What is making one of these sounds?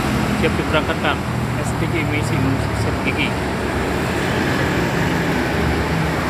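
A bus engine rumbles as it drives past.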